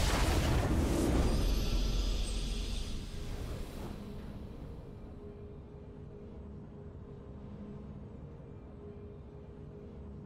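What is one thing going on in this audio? A triumphant game fanfare swells and fades.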